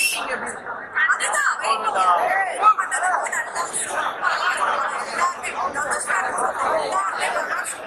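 A young woman speaks excitedly into a microphone, close by.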